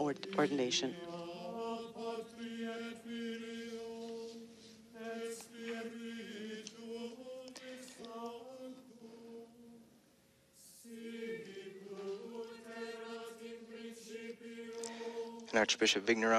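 Men's voices sing a slow, sustained chant in a large echoing hall.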